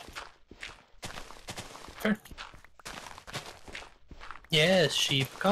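Gravelly dirt crunches in short, repeated scrapes as blocks are dug.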